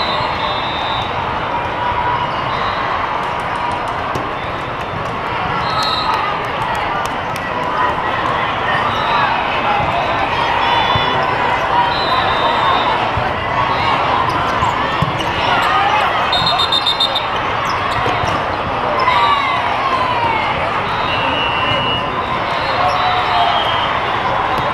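A crowd of people chatters steadily in a large echoing hall.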